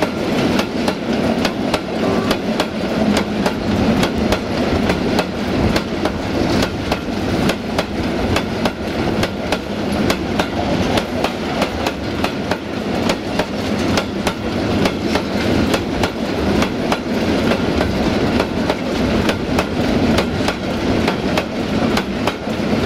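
Freight wagons rumble steadily past close by.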